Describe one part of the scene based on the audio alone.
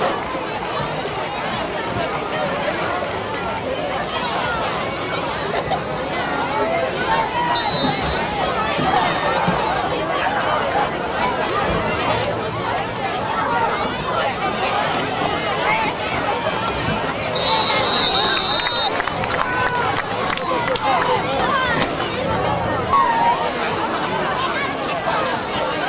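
A large outdoor crowd chatters and cheers in the stands.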